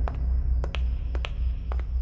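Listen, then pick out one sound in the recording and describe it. Footsteps of a woman echo on a hard floor in a large hall.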